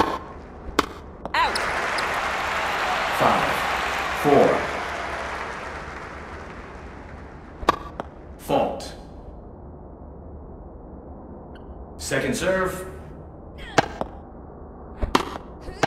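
A tennis ball is struck sharply with a racket, again and again.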